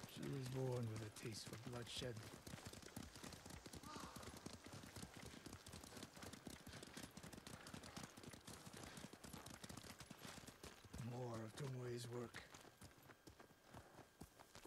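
Horses' hooves pound rapidly on a dirt path.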